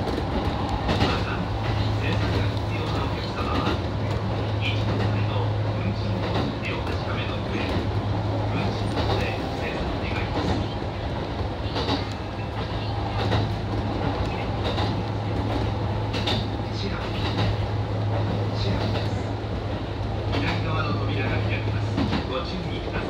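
A train's motor hums steadily inside a moving carriage.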